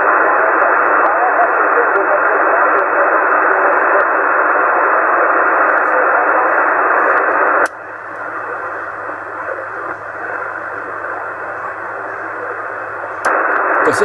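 A middle-aged man talks nearby.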